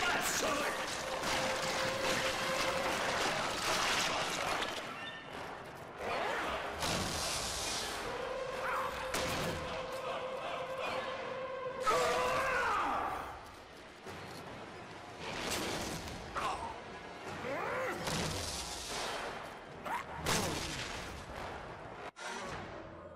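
Heavy blows crash and boom.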